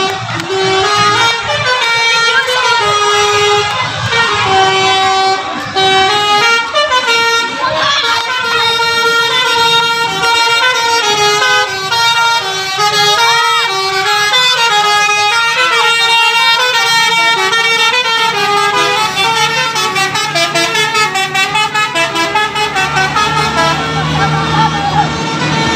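A tour bus plays a melodic multi-tone horn, its notes stepping up and down.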